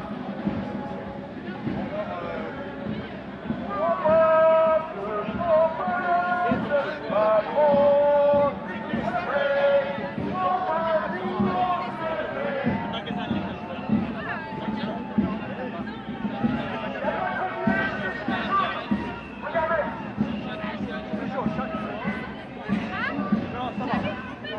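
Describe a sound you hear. A crowd of marching protesters chatters all around outdoors.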